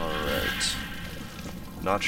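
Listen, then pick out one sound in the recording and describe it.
A fire crackles and roars close by.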